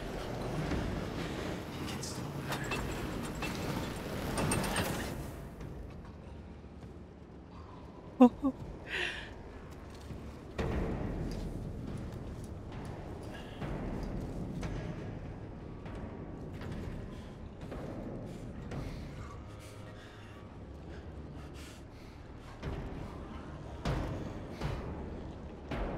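A young woman talks casually into a microphone.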